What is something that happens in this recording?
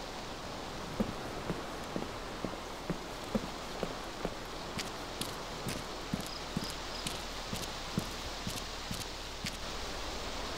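Footsteps thud at a steady walking pace.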